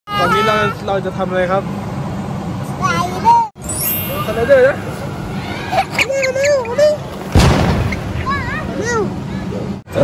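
A young child laughs and squeals with delight close by.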